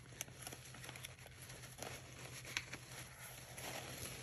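Paper rustles and slides as hands move sheets around.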